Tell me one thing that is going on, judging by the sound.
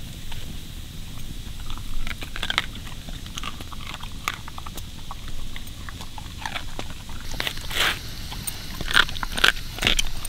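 A dog licks and chews noisily.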